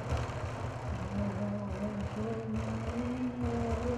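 An elderly man sings into a microphone.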